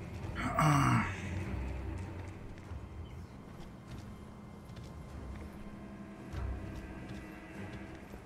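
Armoured footsteps scuff across a stone floor.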